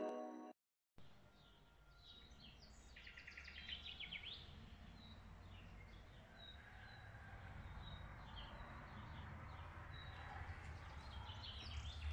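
Wind blows softly across an open outdoor space.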